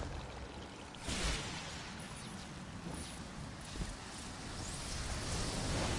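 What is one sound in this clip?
Sparkling energy bursts crackle.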